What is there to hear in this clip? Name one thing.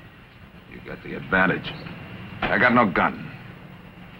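Another man answers calmly close by.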